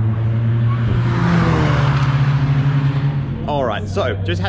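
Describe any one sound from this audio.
A racing car roars past close by, its engine pitch dropping as it goes.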